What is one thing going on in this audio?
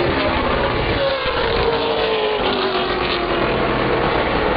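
A race car engine drones past, its pitch slowly falling.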